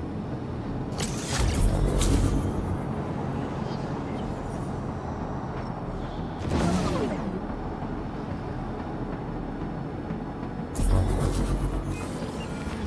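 Laser blasts fire in loud bursts.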